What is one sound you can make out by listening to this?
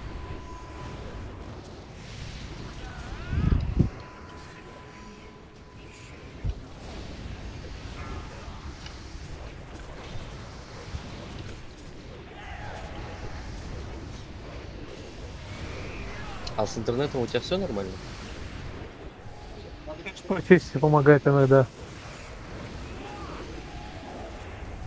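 Magic spells crackle and whoosh in a noisy fantasy battle.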